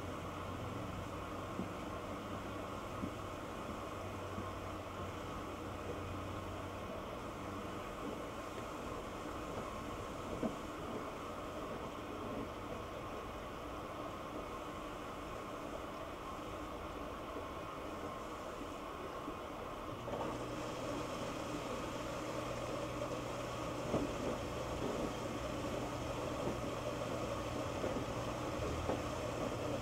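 Wet laundry sloshes and thumps inside a washing machine drum.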